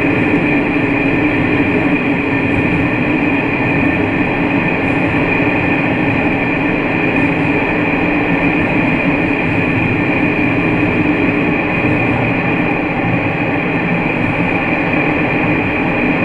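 Train wheels rumble on the rails inside a tunnel.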